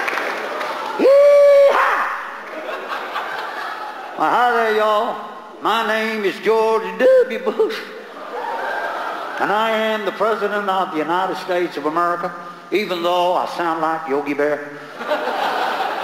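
A man speaks with animation into a microphone, heard through loudspeakers.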